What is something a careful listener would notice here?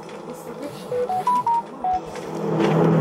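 A short phone notification chime plays a few rising and falling notes.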